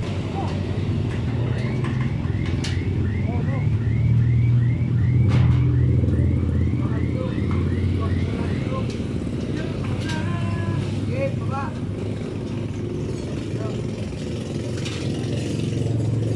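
Metal parts clink and clatter as they are fitted together.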